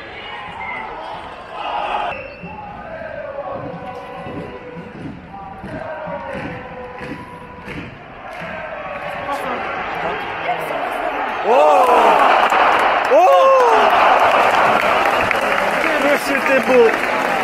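A stadium crowd chatters and sings throughout.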